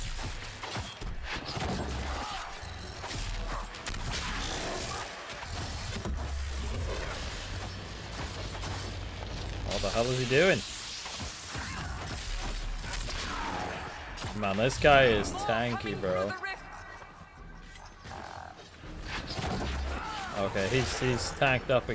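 Swords and weapons clash and strike.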